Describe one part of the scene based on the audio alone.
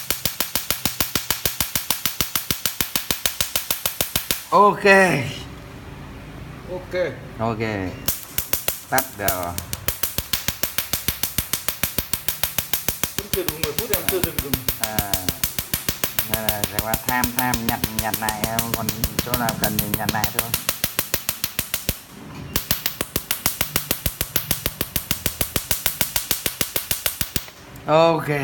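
A laser device clicks in rapid, steady pulses.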